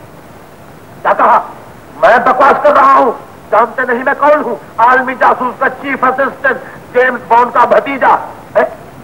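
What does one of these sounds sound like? A middle-aged man shouts excitedly into a telephone.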